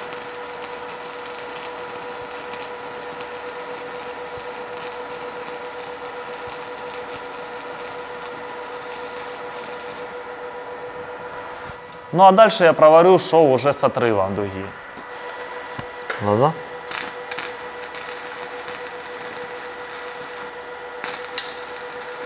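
A welding arc crackles and hisses steadily.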